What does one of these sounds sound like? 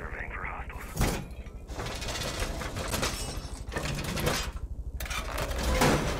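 A metal shutter rattles and clanks as it is braced.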